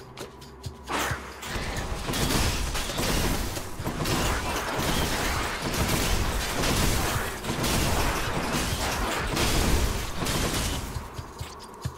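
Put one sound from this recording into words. Lightning strikes crackle and boom again and again.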